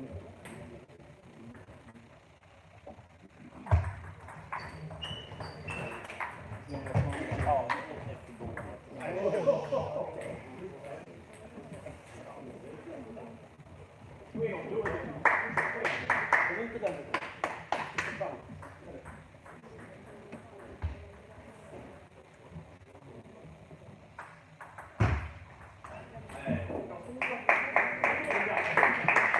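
A table tennis ball clicks back and forth in a rally in a large echoing hall.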